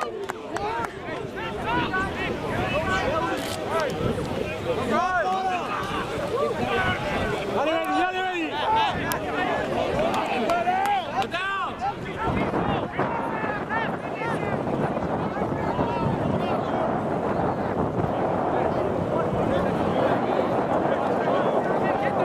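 A crowd of spectators cheers and shouts from the sideline.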